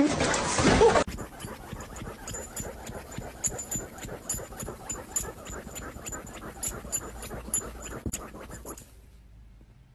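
A dog scrabbles and scratches at a couch cushion.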